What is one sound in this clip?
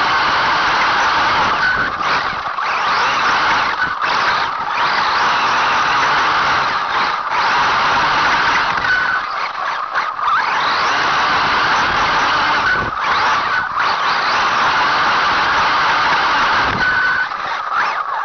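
Wind buffets loudly past, close up.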